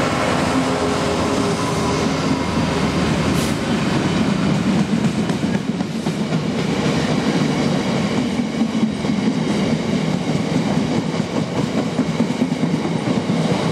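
Freight wagons clatter and rumble past on the rails.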